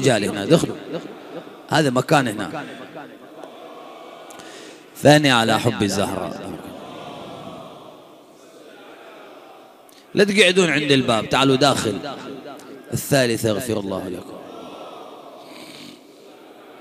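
A man speaks forcefully into a microphone in a large echoing hall, in bursts with pauses.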